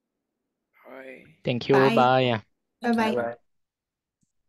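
A woman speaks briefly and calmly over an online call.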